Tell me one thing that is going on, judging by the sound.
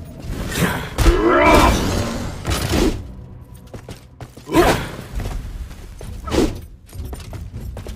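A fireball bursts with a fiery whoosh.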